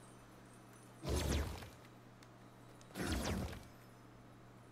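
A rush of water whooshes in short bursts.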